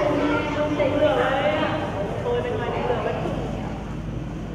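Elderly people speak calmly nearby.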